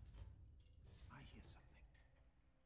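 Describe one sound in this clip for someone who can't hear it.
A man whispers urgently up close.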